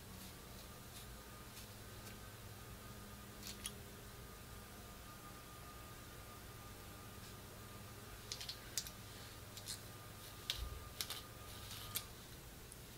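A comb scratches and rustles through hair close by.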